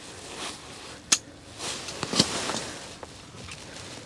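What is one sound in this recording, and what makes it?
Fishing gear clatters and knocks nearby.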